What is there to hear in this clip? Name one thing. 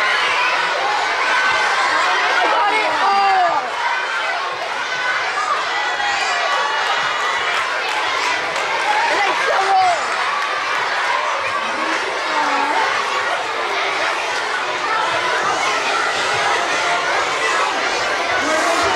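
A crowd of children chatters and calls out loudly.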